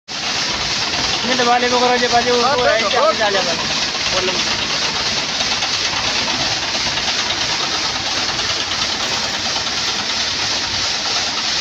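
A diesel engine runs steadily nearby.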